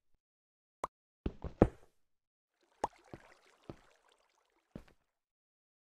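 A pickaxe strikes stone in sharp, repeated knocks.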